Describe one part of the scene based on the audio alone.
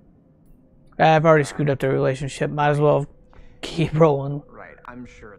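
A middle-aged man speaks briefly and with animation, close to a microphone.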